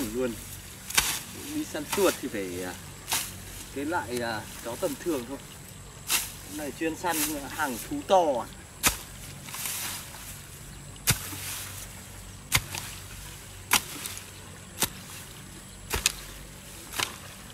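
A hoe chops into soil with dull thuds.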